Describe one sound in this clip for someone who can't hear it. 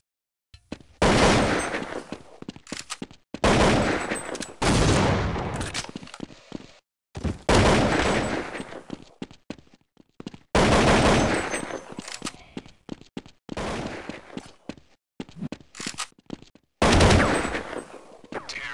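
A rifle fires loud shots that echo and fade.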